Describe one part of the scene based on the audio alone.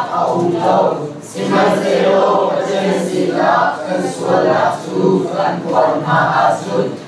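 A man speaks steadily and with animation through a microphone in a room with some echo.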